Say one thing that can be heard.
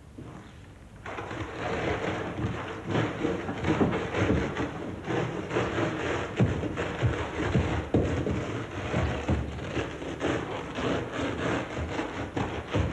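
Crumbly foam rustles and crunches as hands dig into it.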